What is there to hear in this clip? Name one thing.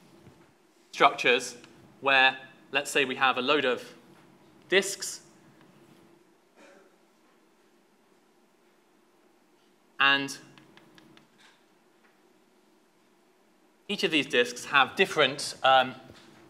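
A young man lectures through a microphone in a large echoing hall, speaking in short bursts with pauses.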